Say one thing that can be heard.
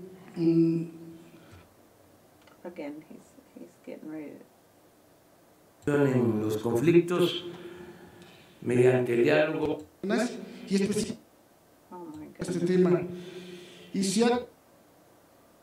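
A middle-aged man asks a question into a microphone.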